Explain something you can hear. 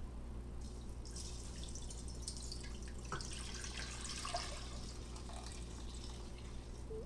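Water pours into a pan and splashes.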